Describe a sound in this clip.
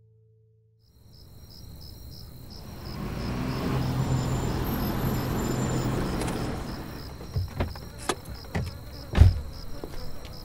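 A car engine rumbles as a car slowly draws near.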